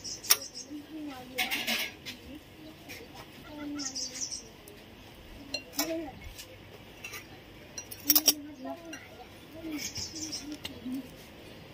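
A spoon clinks against a small bowl.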